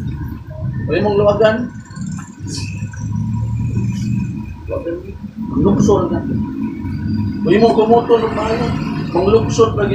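A middle-aged man speaks with animation into a microphone, heard through a loudspeaker.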